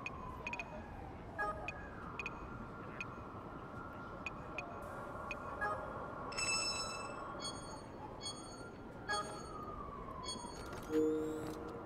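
A phone menu beeps and clicks as options are chosen.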